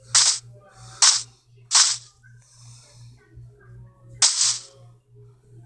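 Footsteps rustle on grass.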